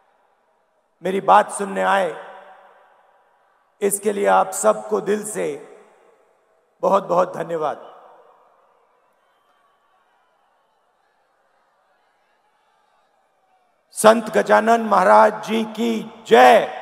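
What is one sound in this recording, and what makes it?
A middle-aged man speaks slowly and with emphasis into a microphone over loudspeakers, echoing outdoors.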